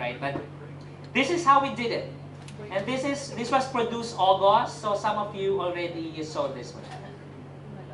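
A man speaks over a loudspeaker in a large echoing hall.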